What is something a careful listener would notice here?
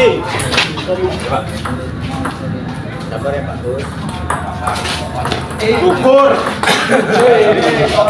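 A table tennis ball clicks back and forth on the paddles and table.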